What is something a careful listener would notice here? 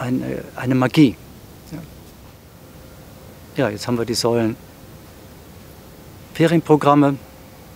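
An elderly man speaks calmly and close by, with pauses between phrases.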